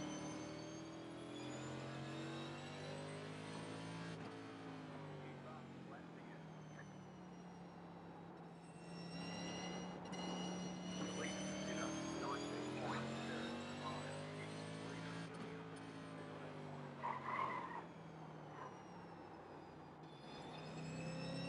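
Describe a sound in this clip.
A race car engine roars steadily, rising and falling in pitch as it speeds up and slows down.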